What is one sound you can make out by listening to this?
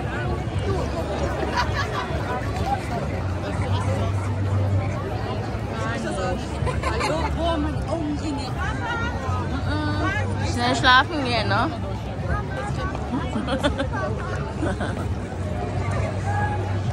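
A crowd of men and women chatters close by all around, outdoors.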